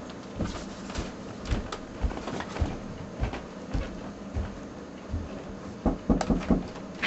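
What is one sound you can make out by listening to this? Footsteps thud on carpeted stairs.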